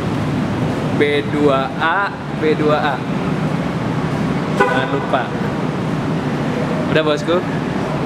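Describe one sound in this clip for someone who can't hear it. A young man talks casually nearby, in an echoing space.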